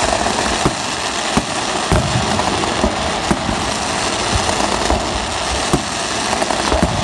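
Firework shells burst with sharp bangs.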